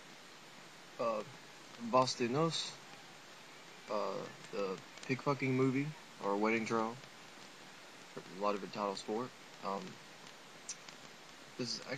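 A young man talks calmly and close to the microphone, in short bursts with pauses.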